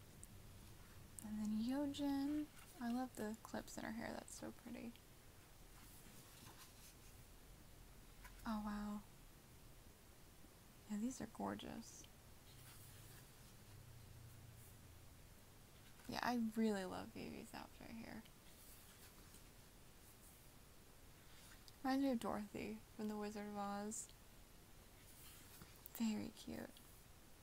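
Paper pages rustle as a book's pages are turned by hand.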